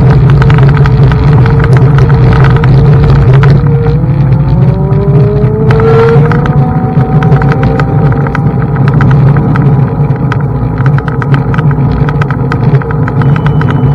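Tyres roll and crunch over gravel.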